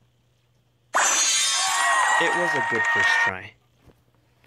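A game plays a bright, sparkling fanfare as a ranking rises.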